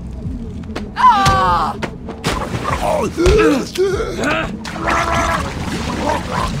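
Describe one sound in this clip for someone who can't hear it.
Men grunt and groan as they struggle.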